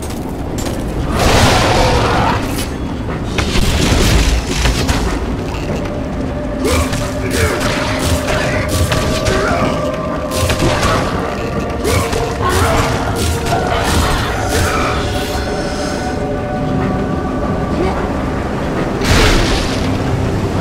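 Blades swing and strike with sharp whooshes and impacts.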